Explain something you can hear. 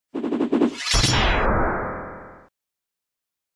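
A whooshing intro jingle swells and fades.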